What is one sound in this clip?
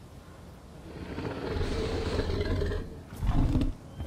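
A large dinosaur lets out a deep, rumbling roar.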